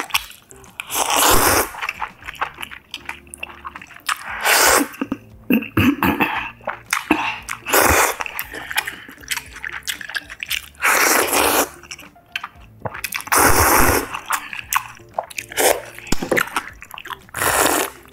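A young woman slurps noodles loudly, close up.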